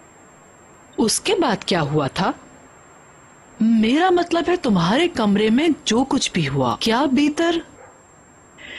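A middle-aged woman speaks with animation, close by.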